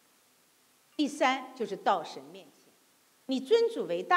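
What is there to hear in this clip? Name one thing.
A middle-aged woman speaks calmly into a microphone.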